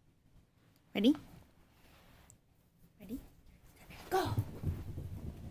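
A small dog barks sharply close by.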